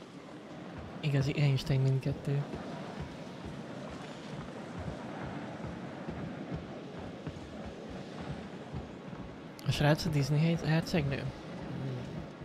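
A young man talks briefly into a close microphone.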